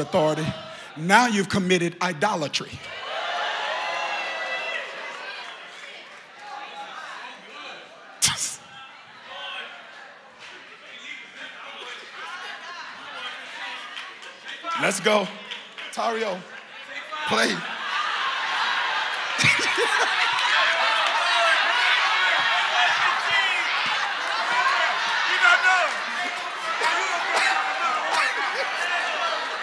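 A man preaches with animation into a microphone in a large echoing hall.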